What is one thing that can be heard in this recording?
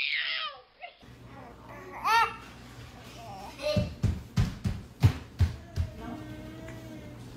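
A baby babbles softly close by.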